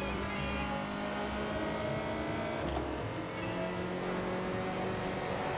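A racing car engine roars at speed.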